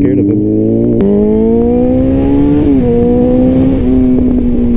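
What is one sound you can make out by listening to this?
A motorcycle engine revs up sharply.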